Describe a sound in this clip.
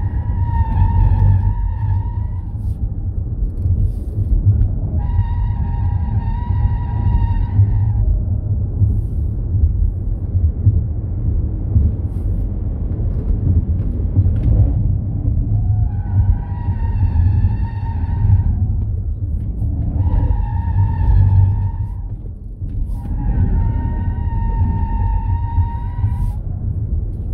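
Car tyres squeal through the corners.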